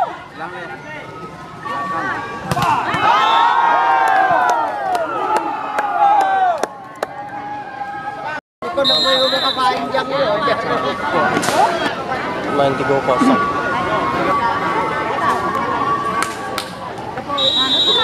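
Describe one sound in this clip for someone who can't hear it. A volleyball is struck with a hand, with sharp smacks.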